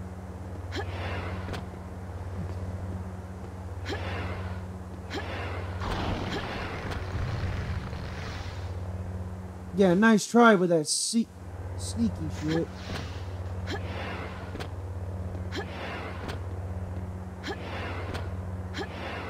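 A lightsaber hums steadily with a low buzz.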